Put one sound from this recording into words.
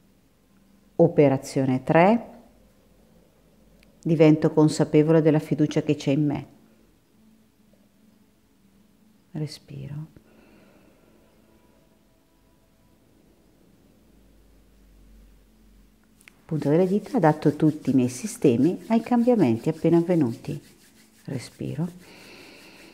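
A woman speaks calmly and close by, with pauses.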